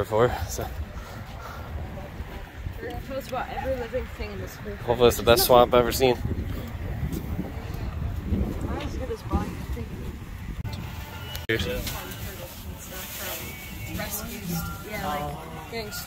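Men and women talk casually nearby, outdoors.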